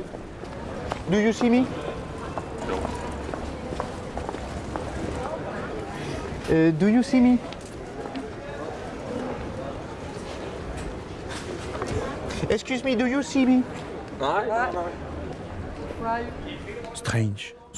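A man asks a short question aloud, again and again, outdoors.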